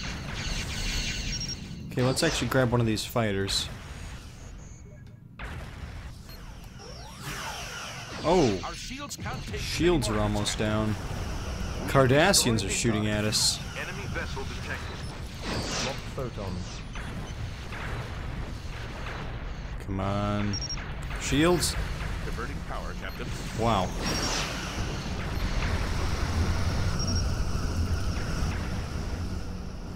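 A spaceship engine hums steadily.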